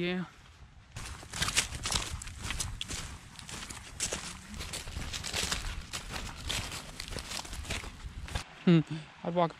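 Footsteps crunch through dry leaves.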